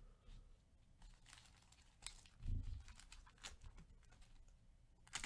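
A foil card pack crinkles and tears as it is opened.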